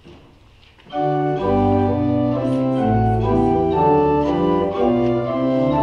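A choir sings together loudly.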